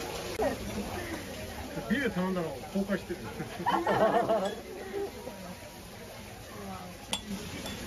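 Sparklers fizz and crackle.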